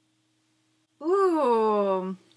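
A man lets out a long, drawn-out appreciative sound.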